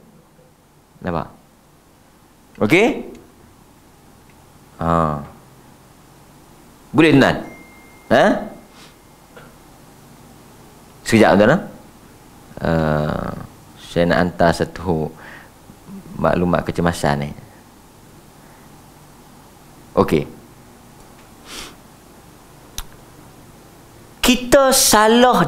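A man speaks slowly and calmly into a microphone, with long pauses.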